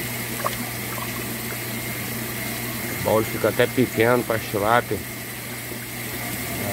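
Water churns and splashes steadily nearby.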